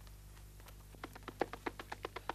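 A horse's hooves pound rapidly in a gallop.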